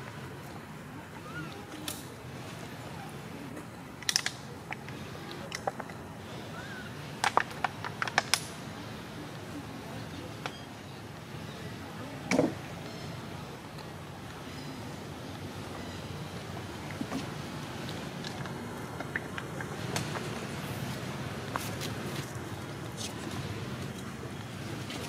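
Small monkeys scamper over rocks and rustle dry leaves.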